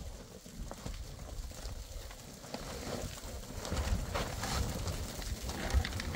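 Heavy tent fabric rustles and flaps as it is pushed aside.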